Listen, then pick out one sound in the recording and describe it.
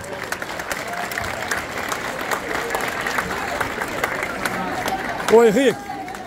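A crowd claps steadily outdoors.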